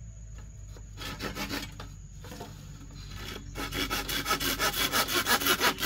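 A blade chops rapidly into bamboo.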